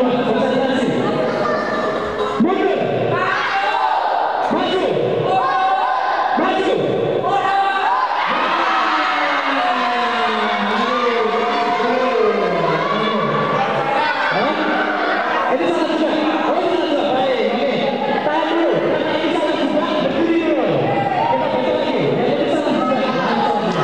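A crowd of children shouts and chatters loudly in an echoing hall.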